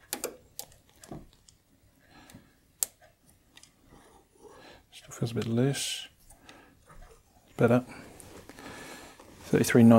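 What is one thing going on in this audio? Small metal tools click and tap against metal.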